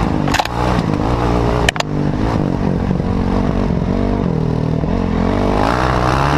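A dirt bike engine revs loudly up close, rising and falling in pitch.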